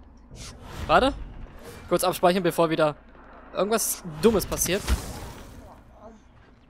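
A crackling magical whoosh sounds.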